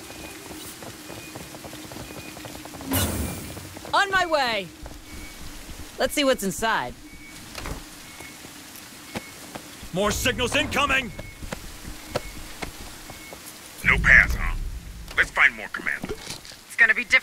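Gunfire crackles in short bursts.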